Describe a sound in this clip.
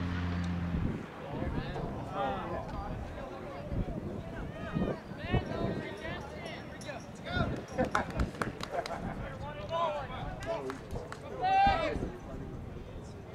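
Young players shout and call out to each other across an open field.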